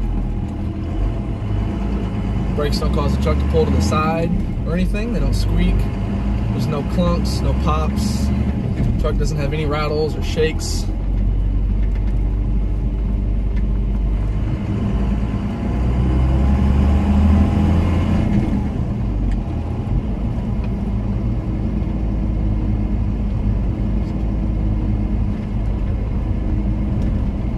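A car engine hums steadily as the vehicle drives along a road.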